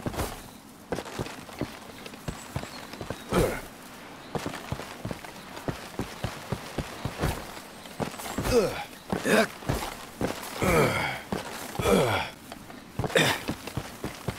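Boots scrape and thud while climbing over tree roots.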